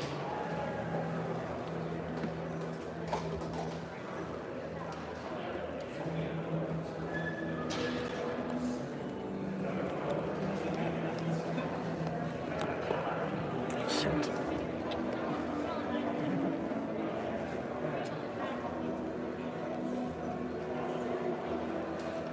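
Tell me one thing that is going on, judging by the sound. Several men talk casually in a large echoing hall.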